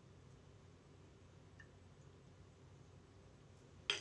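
A young woman gulps a drink.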